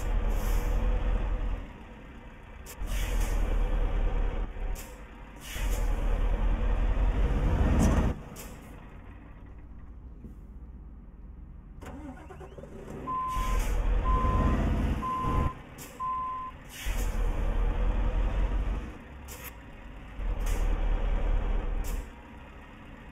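A truck engine rumbles and roars in bursts.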